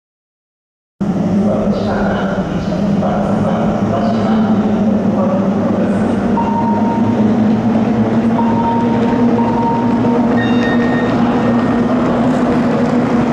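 Racing boat engines drone steadily across open water.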